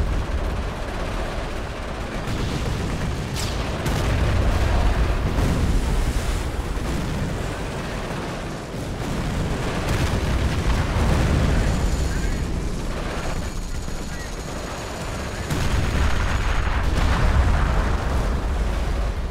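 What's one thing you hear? Explosions boom and rumble, one after another.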